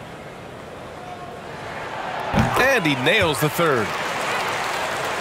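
A large crowd cheers and roars in an echoing arena.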